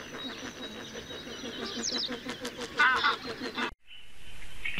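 A lapwing gives sharp, wheezy calls.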